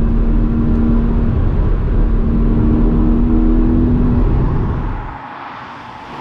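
A car engine drones steadily from inside the cabin.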